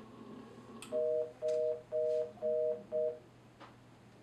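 An intercom beeps in a run of short, even tones.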